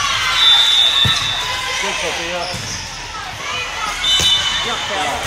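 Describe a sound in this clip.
A volleyball is struck with a thump.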